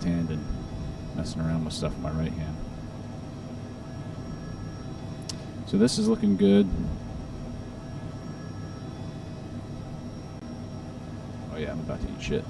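A helicopter engine hums steadily.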